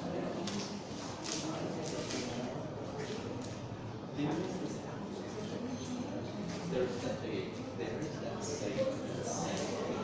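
A stick taps and scrapes on a hard floor in an echoing room.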